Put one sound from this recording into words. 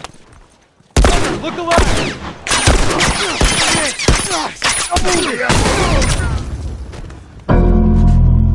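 Gunshots crack rapidly at close range.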